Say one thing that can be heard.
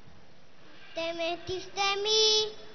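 A young boy speaks briefly into a microphone.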